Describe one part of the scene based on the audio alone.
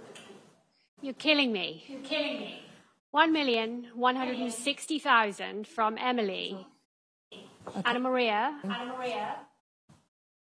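A woman auctioneer announces bids with animation through a microphone.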